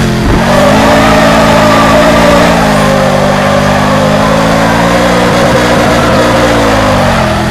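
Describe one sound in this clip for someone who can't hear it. A car engine runs at high revs through a drift.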